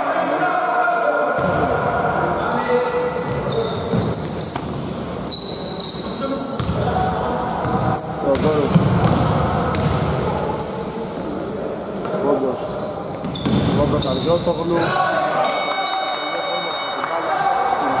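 Sneakers squeak sharply on a hard floor, echoing in a large hall.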